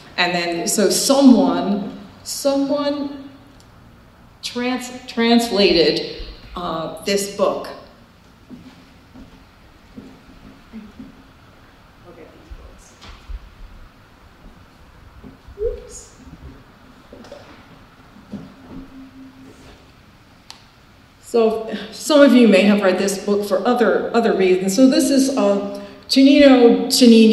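A middle-aged woman talks calmly into a nearby microphone.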